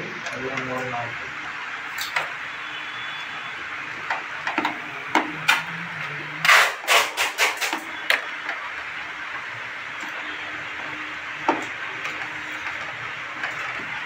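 A screwdriver scrapes and clicks against metal screws.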